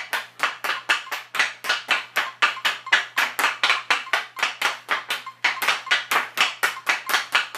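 A hockey stick blade taps a puck back and forth on a synthetic ice floor.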